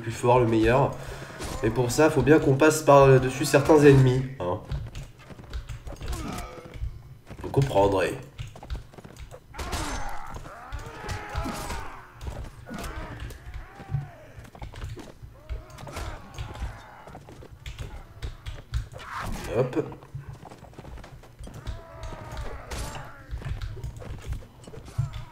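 A horse gallops with heavy hoofbeats.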